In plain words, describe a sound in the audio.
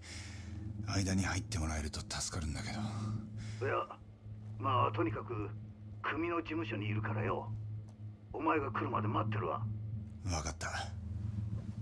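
A young man speaks calmly on a phone, close by.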